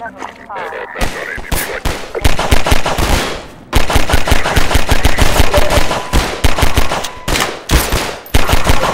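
A pistol fires rapid, loud shots close by.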